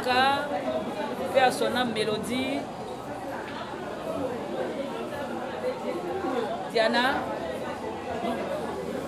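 A woman speaks nearby, with animation.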